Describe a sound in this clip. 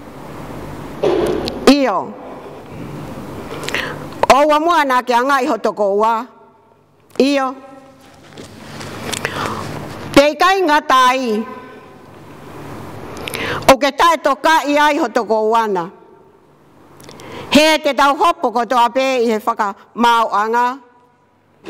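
An elderly woman reads aloud slowly and calmly into a microphone, in an echoing hall.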